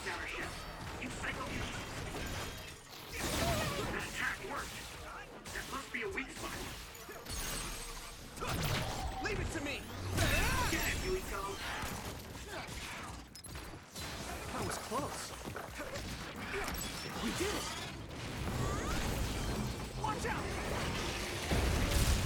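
Metal blades clash and whoosh in a video game fight.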